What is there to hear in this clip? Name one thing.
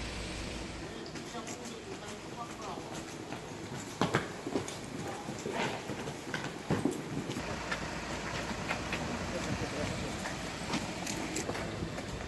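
Footsteps scuff and knock on hard ground outdoors.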